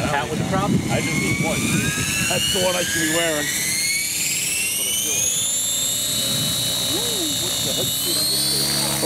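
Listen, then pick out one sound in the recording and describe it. A model helicopter's motor whines, rising steadily in pitch as its rotor spins up.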